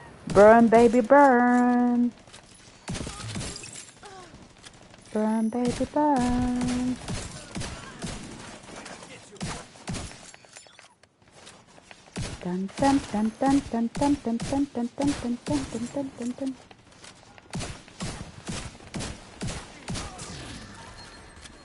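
Rapid gunfire cracks in short bursts.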